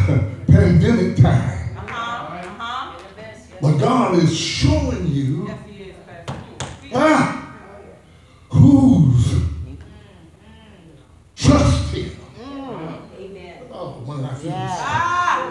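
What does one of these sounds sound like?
A man preaches with animation into a microphone in an echoing hall.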